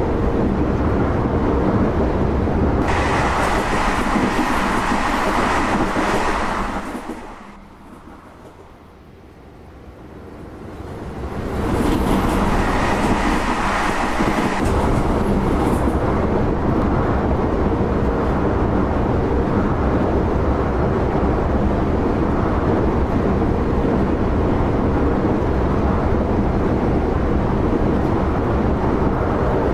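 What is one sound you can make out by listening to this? A train's wheels rumble and clatter steadily over the rails.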